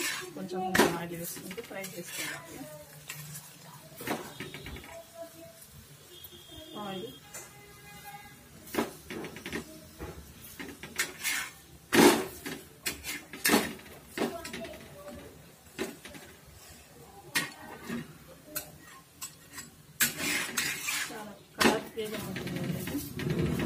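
Food sizzles in oil in a pan.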